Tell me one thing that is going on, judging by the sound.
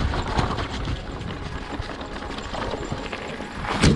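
Mountain bike tyres crunch along a dirt trail.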